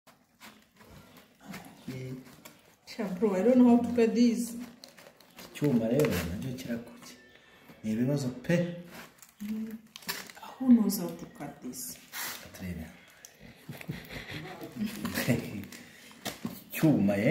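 Foil crinkles and rustles.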